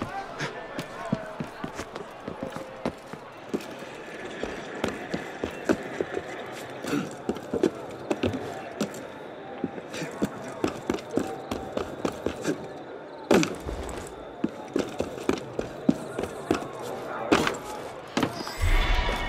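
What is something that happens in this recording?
Footsteps patter and scrape across roof tiles.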